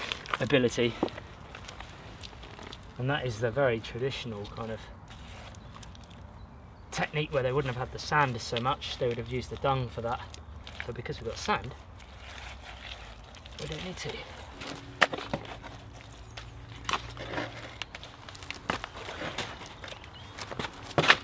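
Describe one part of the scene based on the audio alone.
Wet mud squelches and slaps as it is pressed by hand.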